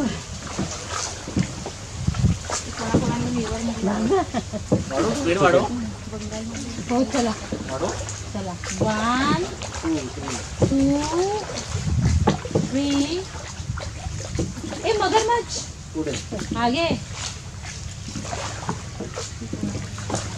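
An oar dips and splashes in calm water.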